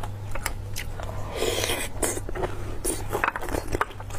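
A young woman slurps and chews food close to a microphone.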